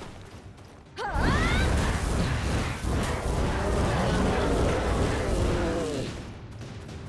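Creatures growl and screech in combat.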